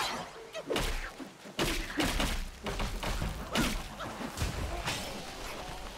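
Staff strikes land with sharp thuds and whooshes.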